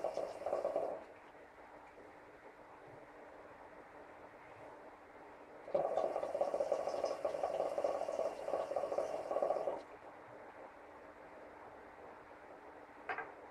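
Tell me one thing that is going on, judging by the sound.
A man exhales a long breath.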